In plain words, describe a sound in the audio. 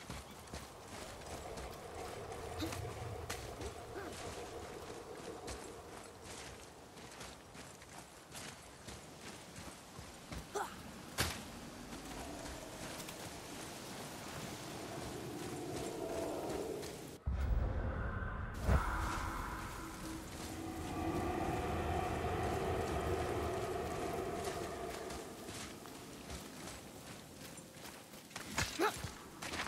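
Heavy footsteps crunch on stone and gravel.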